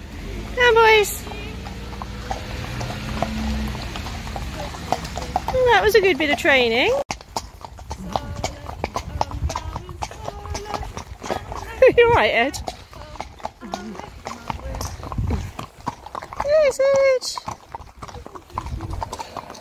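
Horse hooves clop on a wet road.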